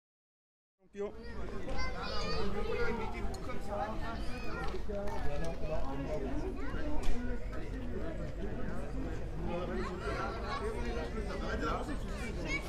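Children chatter and call out nearby, outdoors.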